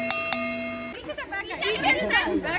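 A crowd of women and children laughs and cheers nearby.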